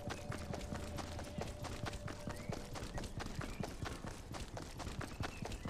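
Quick footsteps run over the ground.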